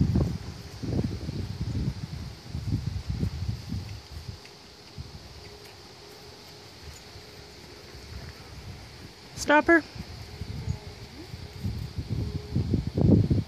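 A horse's hooves thud softly on grass at a walk.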